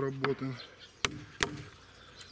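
A chisel cuts into wood with sharp taps.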